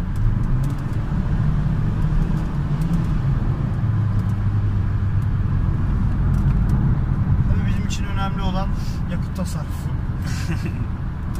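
A car engine hums and road noise rumbles steadily from inside a moving car.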